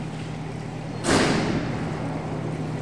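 A diving board bangs and rattles as a diver bounces on it, echoing in a large hall.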